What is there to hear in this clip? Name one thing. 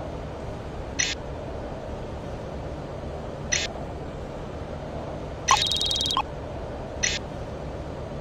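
Short interface clicks sound as menu items are selected.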